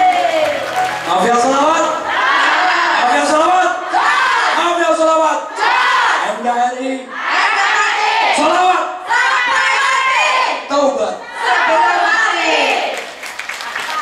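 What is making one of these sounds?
A crowd of women sings along and cheers.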